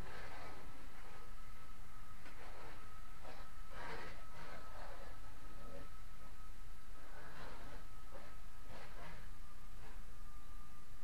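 A scraper rasps against a wall in short, repeated strokes.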